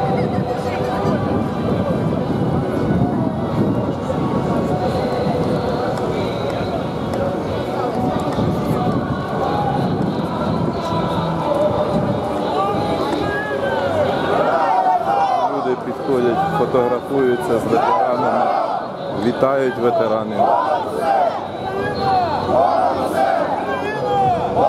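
A large crowd chatters outdoors on a wide street.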